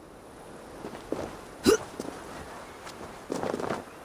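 Footsteps rustle quickly through dry grass.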